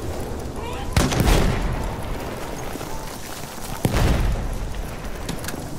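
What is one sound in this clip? An explosion booms nearby with a deep rumble.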